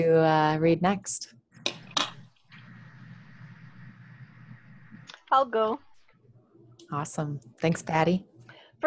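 Several women talk with animation over an online call.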